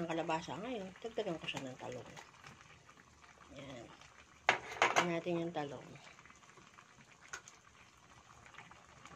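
Broth bubbles gently in a pan.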